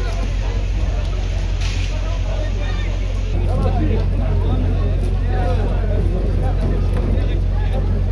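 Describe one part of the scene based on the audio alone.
Metal clangs as men pull at a gate.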